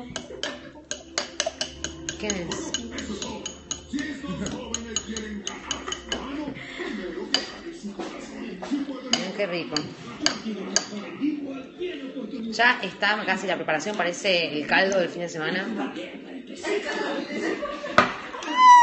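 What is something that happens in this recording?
A fork scrapes and clicks against a glass bowl while mashing.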